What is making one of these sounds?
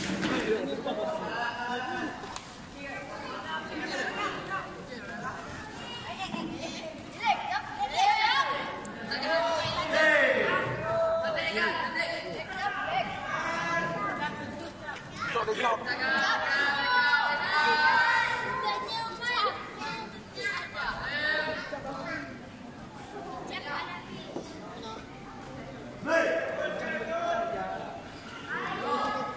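A crowd of spectators talks and cheers in an echoing hall.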